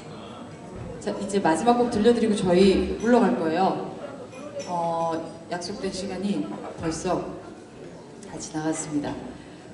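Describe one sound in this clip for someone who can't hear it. A woman sings into a microphone over loudspeakers.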